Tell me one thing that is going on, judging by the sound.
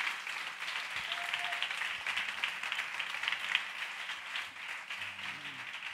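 A band plays music live in a large, echoing hall.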